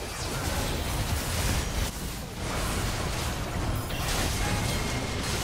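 Magic spells whoosh and blast in rapid bursts.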